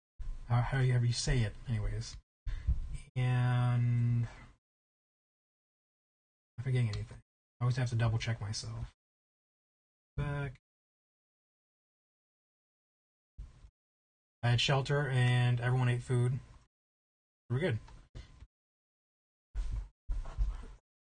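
A young man talks with animation into a close microphone, with pauses.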